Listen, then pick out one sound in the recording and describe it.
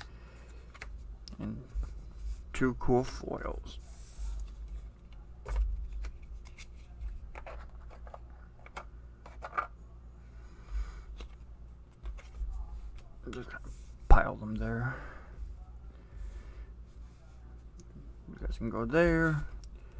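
Playing cards are laid down on a table with soft taps.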